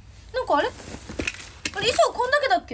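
Fabric rustles close by.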